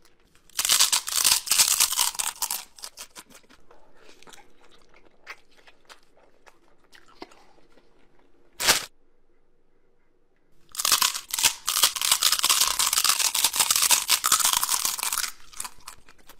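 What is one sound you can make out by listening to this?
A young man crunches loudly on crispy dry noodles, close up.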